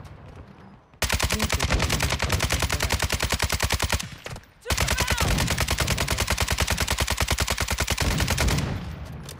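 An automatic rifle fires rapid bursts.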